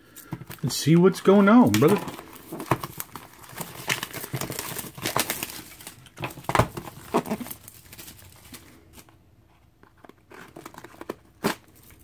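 A small blade slits through plastic wrap.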